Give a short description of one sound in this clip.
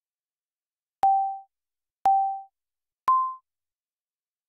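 A game beeps a short countdown, with a higher final beep.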